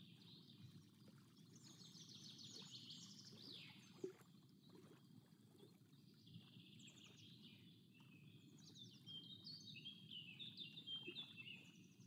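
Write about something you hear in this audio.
Small waves lap gently against a boat.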